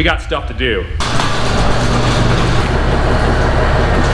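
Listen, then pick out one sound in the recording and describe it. A garage door rattles as it rolls open.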